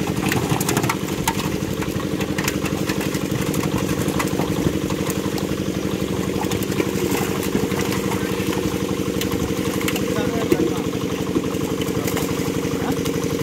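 Fish thrash and splash loudly in water.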